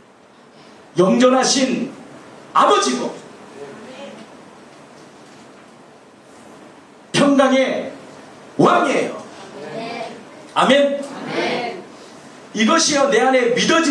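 A man speaks forcefully into a microphone in bursts, with pauses between phrases.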